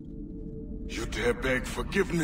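An elderly man speaks in a low, rough voice close by.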